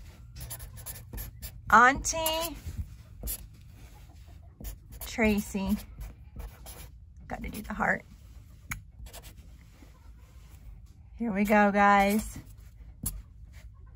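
A felt-tip marker squeaks and scratches across a wooden surface.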